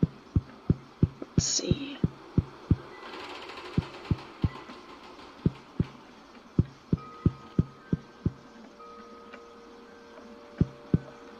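Footsteps knock steadily on a wooden floor.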